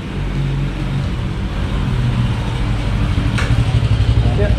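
A motorbike engine putters close by and grows louder as it approaches.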